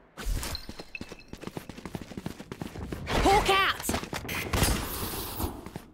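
A magical burst whooshes loudly.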